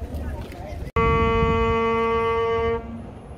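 A man plays a long, steady note on a small wind instrument.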